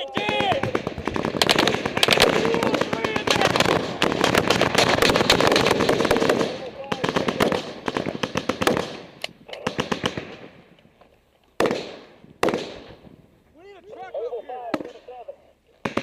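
Gunfire cracks rapidly and loudly nearby, with bursts echoing outdoors.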